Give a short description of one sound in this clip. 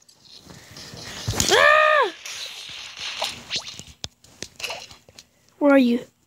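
A short electronic game effect plays as an item is used.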